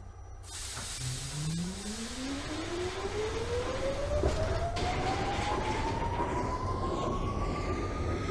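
A subway train's electric motors whine, rising in pitch as the train pulls away.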